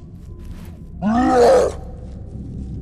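A creature lets out a sudden, loud, shrill screech.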